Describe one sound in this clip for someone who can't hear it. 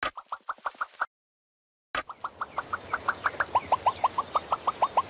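A painting brush makes quick popping sounds in a steady rhythm.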